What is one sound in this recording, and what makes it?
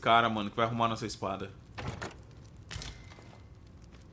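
A wooden chest lid thuds open.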